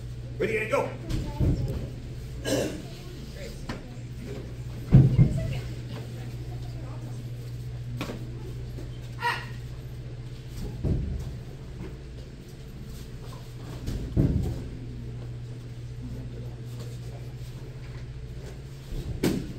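A child's bare feet thump on a padded mat while kicking.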